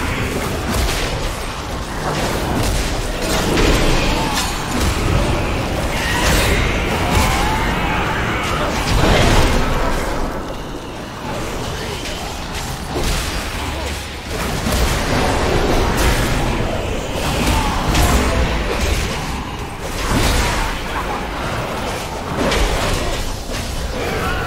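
Game combat effects crash and whoosh.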